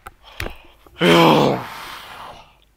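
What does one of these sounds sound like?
A young man shouts loudly into a microphone.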